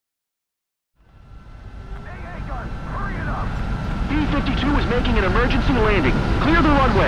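A jet engine rumbles steadily and grows louder.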